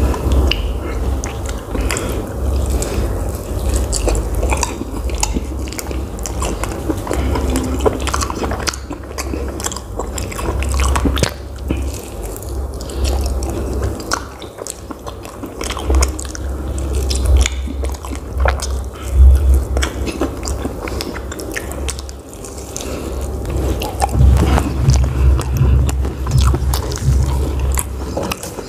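A young man chews food loudly and wetly close to a microphone.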